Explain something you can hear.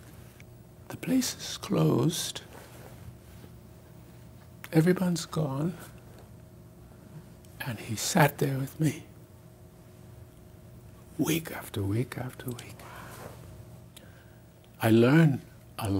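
An elderly man speaks slowly and thoughtfully, with long pauses, close to a microphone.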